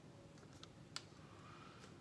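A plastic cup is set down with a light tap.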